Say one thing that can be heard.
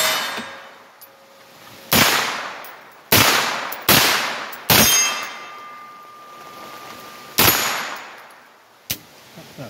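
Rifle shots ring out loudly outdoors, echoing off the woods.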